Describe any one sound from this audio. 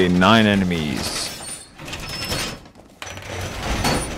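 Heavy metal panels clank and scrape as a wall is reinforced.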